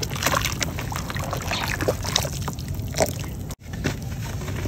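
Hands squish and stir thick wet mud.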